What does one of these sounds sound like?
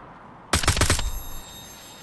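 A gun fires loud shots close by.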